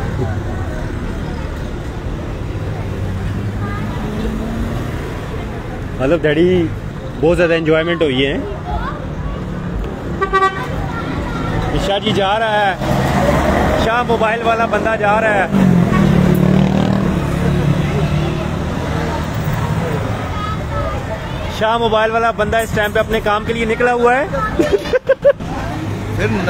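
Car engines hum as vehicles drive past on a street.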